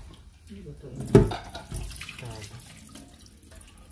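Water pours from a pot and splashes into a metal sink.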